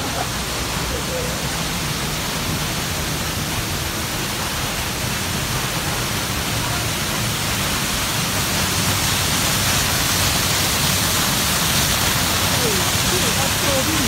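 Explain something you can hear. A waterfall pours and splashes steadily, growing louder up close.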